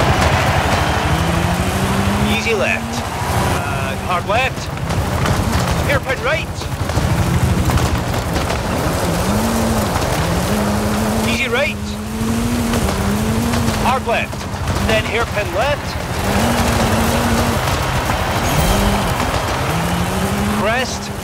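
Tyres crunch and spray loose gravel.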